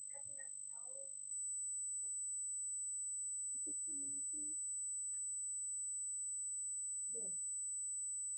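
A woman speaks quietly, close by.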